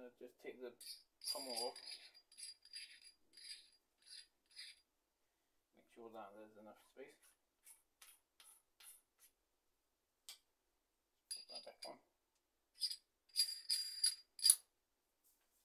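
Metal hilt parts click and clink as they are handled and screwed together.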